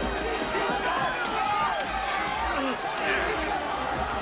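Several men shout roughly.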